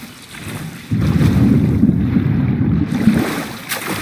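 A swimmer splashes underwater with a muffled rush.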